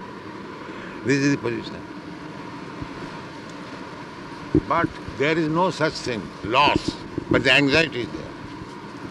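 An elderly man speaks slowly into a microphone, in an old, hissy recording.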